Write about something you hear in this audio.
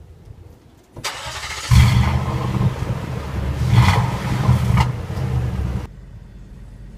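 A truck engine revs loudly through its exhaust.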